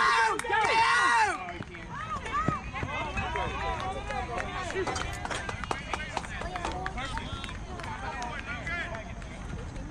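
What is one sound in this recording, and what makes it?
Young boys shout and cheer excitedly outdoors, some close and some farther off.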